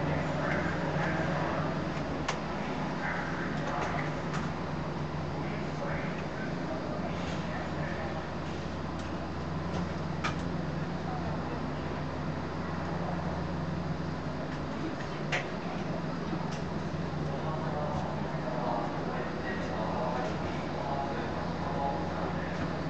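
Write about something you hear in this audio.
A train's electric motor hums steadily.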